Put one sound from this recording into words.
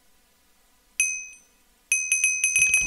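A short chime rings out.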